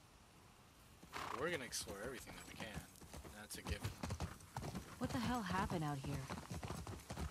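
A horse's hooves thud on grass.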